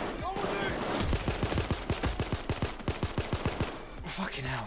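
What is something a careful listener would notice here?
Gunshots fire in a rapid, steady burst.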